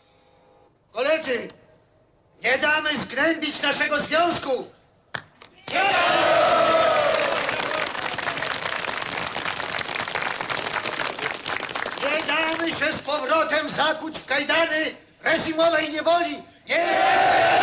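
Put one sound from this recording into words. A man speaks loudly to a crowd outdoors.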